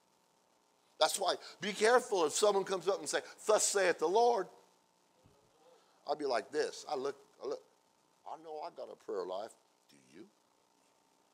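A middle-aged man speaks into a microphone, with pauses between phrases.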